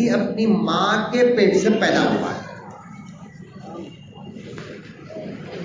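A man preaches loudly into a microphone through a loudspeaker.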